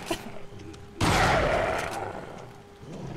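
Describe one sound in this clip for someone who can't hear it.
A shotgun fires once with a loud blast that fades out.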